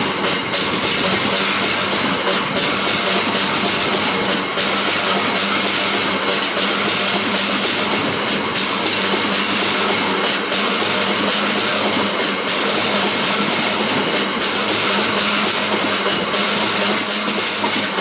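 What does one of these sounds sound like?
A freight train's wagons rumble and clatter loudly along the rails close by.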